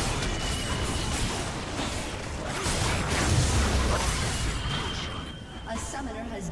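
Fantasy battle effects crackle and clash.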